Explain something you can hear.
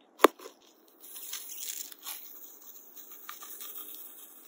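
Foam squeezes out of a rubber glove with a soft fizzing crackle.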